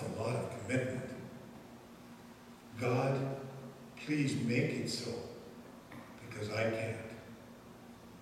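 A man speaks slowly and calmly into a microphone in a room with a slight echo.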